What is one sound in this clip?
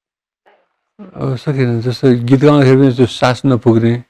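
An elderly man sings close by in a wavering voice.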